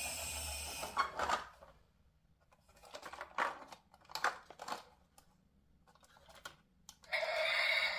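Plastic parts of a toy truck click and clatter as it is taken apart.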